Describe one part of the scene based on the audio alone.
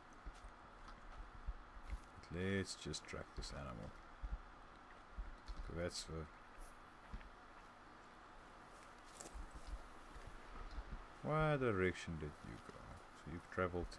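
Footsteps crunch over a forest floor.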